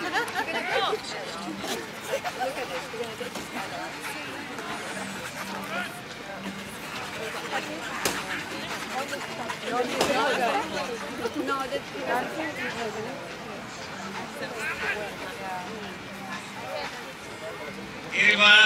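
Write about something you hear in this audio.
A crowd murmurs and chatters outdoors.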